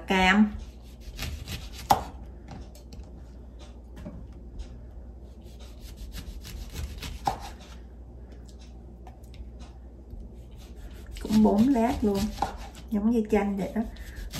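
A knife slices through an orange and taps on a wooden board.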